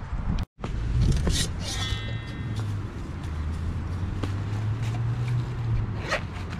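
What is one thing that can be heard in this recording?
Metal cups clink and rattle as they are set down.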